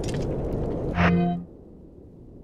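A menu chime rings out.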